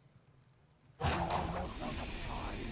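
A magical burst with a whoosh sounds loudly.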